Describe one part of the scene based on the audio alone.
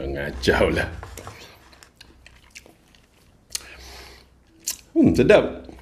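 A man chews food with wet, crunchy sounds.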